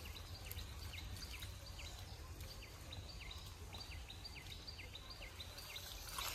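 Bare feet squelch in wet mud.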